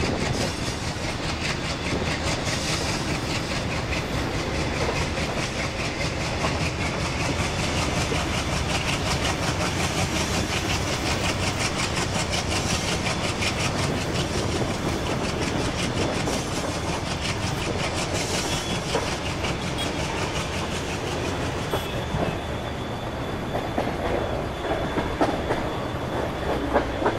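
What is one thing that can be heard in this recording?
A passenger train rumbles past at speed, its wheels clattering rhythmically on the rails.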